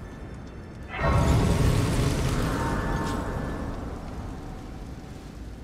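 A bright, shimmering magical chime swells up and slowly fades.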